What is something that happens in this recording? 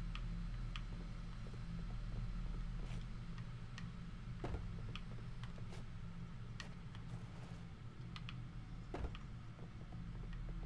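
Footsteps tap on a metal floor.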